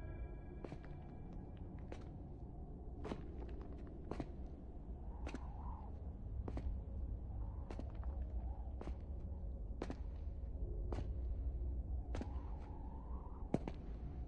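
Slow footsteps echo through a large, reverberant hall.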